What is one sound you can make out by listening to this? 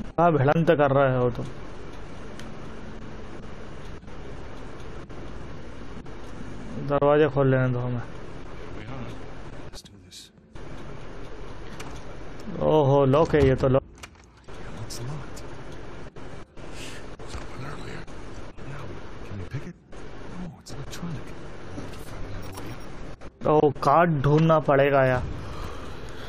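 A man speaks calmly and close by, in short bursts.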